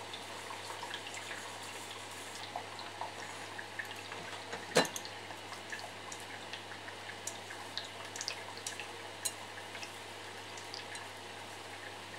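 Chopsticks tap and scrape against a frying pan.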